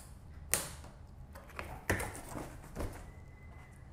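Tape rips off a cardboard box.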